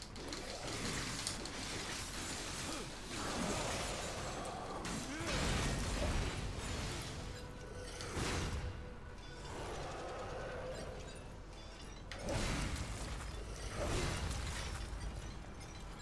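Heavy blows clash and crunch against ice.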